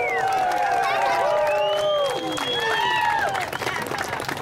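Several men and women whoop and cheer loudly.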